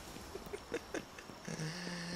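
Footsteps patter quickly up stone steps.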